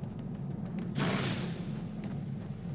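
A sudden hissing burst of magic blasts and fades.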